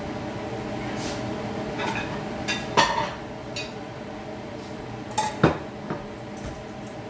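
Dishes clink and clatter.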